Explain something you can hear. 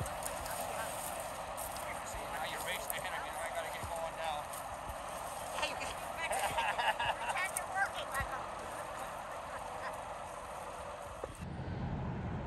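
Plastic bags rustle as litter is dropped in.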